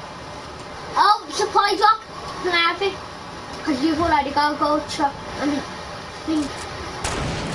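A boy talks with animation into a close microphone.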